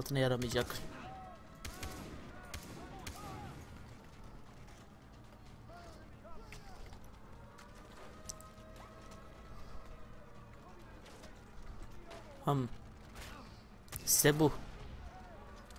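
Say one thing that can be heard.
A gun fires loudly in sharp bursts.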